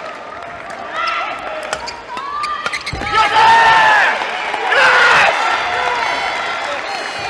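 Rackets smack a shuttlecock in a quick rally, echoing in a large hall.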